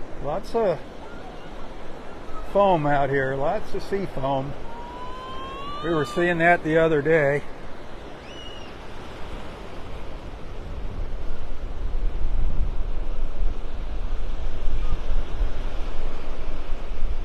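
Small waves wash and break gently onto the shore.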